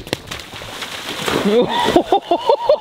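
Water splashes loudly as a person slides through a flooded puddle.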